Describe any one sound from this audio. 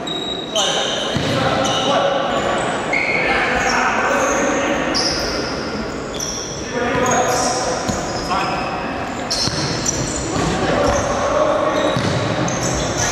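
Sports shoes squeak on a wooden floor.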